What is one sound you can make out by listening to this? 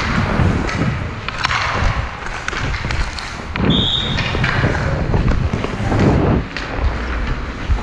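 A hockey stick taps a puck on the ice.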